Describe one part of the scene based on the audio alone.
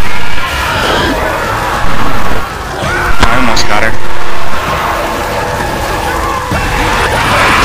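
Zombies snarl and screech close by.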